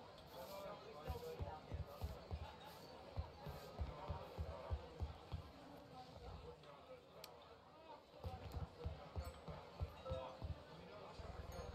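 Footsteps tap lightly on a wooden floor.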